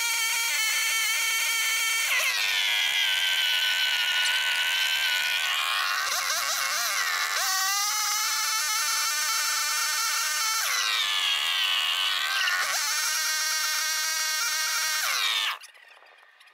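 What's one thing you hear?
A small petrol engine drones loudly and revs up and down, then cuts out.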